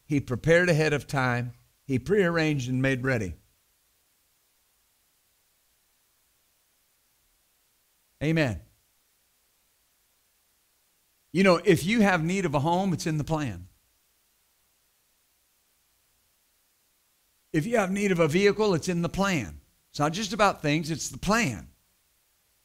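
A middle-aged man speaks calmly and deliberately through a microphone, with long pauses.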